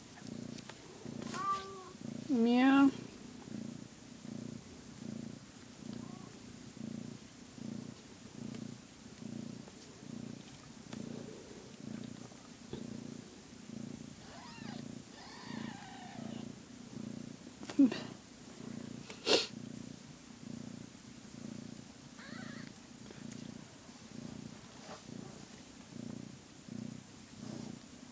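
A cat purrs loudly and steadily up close.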